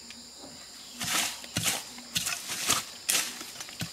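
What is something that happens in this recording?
A blade chops into bamboo with sharp knocks.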